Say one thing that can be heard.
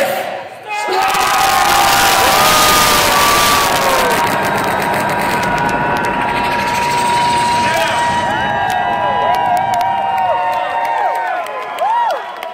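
A large crowd cheers and shouts loudly.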